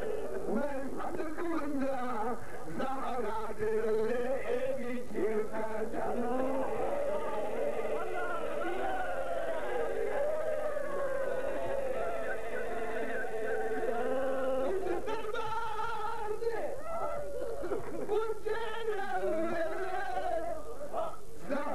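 A middle-aged man speaks passionately into a microphone, his voice loud and chanting over a loudspeaker.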